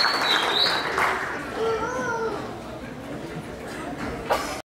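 Men and women on stage chatter quietly among themselves.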